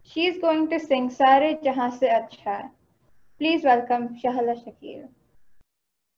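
A young girl speaks clearly into a microphone, reciting.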